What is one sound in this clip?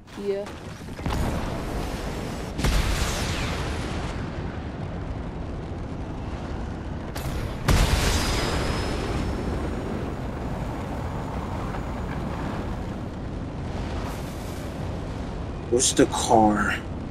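A rocket engine roars and rushes through the air.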